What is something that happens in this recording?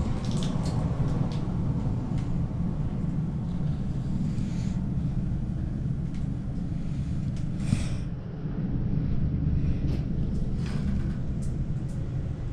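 A lift car hums and rumbles steadily as it moves.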